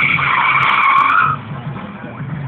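Car tyres screech on pavement.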